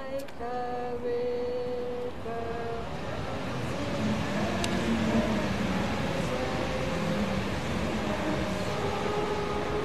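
A group of men and women sing a hymn together outdoors.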